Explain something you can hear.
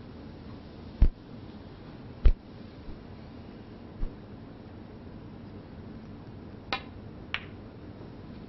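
A cue strikes a snooker ball and the balls clack sharply.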